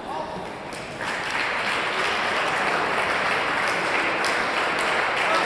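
A crowd applauds and cheers loudly.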